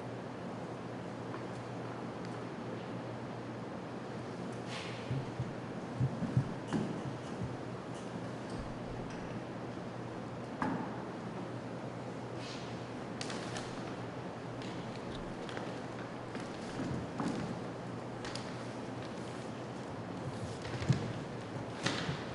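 A paper bag rustles and crinkles.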